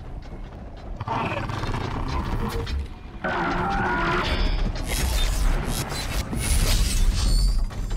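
A large machine creature stomps and roars nearby.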